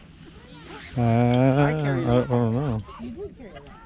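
A woman sings loudly close by.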